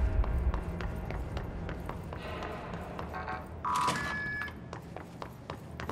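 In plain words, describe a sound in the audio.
Footsteps run quickly across a hard floor in a large echoing space.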